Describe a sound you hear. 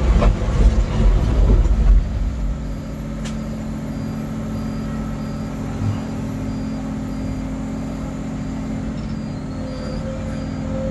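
A diesel engine hums steadily from inside an excavator cab.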